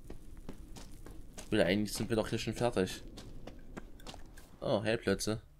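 Footsteps crunch on the ground at a steady pace.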